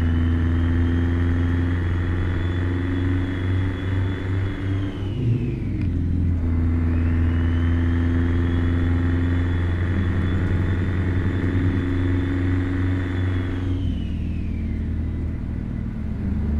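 A truck's diesel engine drones steadily, dipping briefly as it shifts gear and then pulling again.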